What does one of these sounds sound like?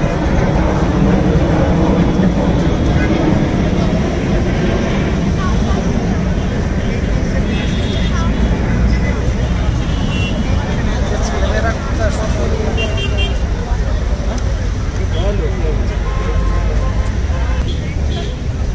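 Traffic rumbles by on a nearby road.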